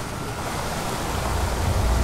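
Water pours and splashes steadily from above.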